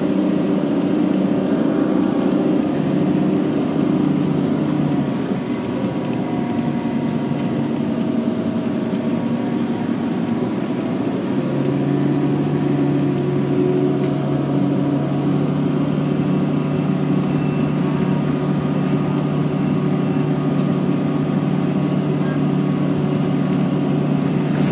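A bus engine hums steadily from inside, rising and falling in pitch as the bus drives.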